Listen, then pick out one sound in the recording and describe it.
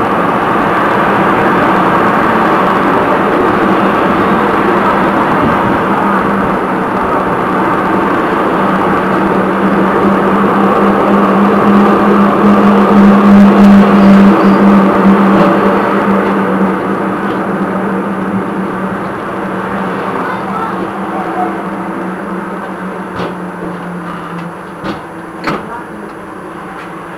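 A tram rumbles and hums steadily along its rails, slowing to a stop.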